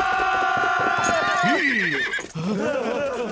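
A horse whinnies loudly.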